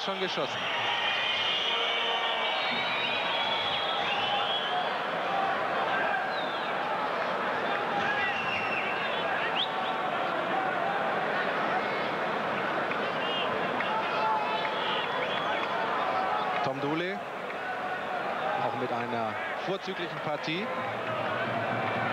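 A large stadium crowd cheers, chants and whistles loudly.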